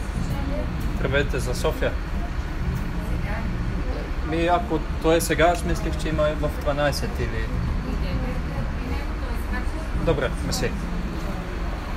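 A young man talks calmly, close to the microphone.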